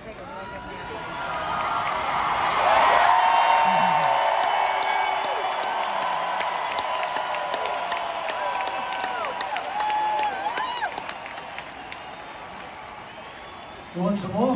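A large crowd cheers and whistles in a huge arena.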